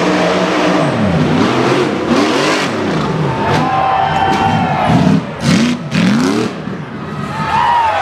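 An off-road buggy engine revs hard, rising and falling in bursts.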